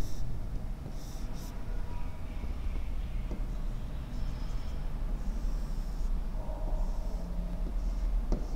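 A pen scratches lightly across a board.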